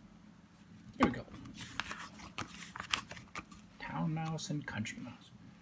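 Paper pages rustle and flip as a book's pages are turned.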